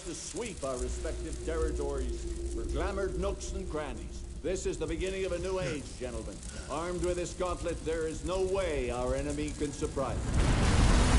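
An elderly man speaks slowly and menacingly.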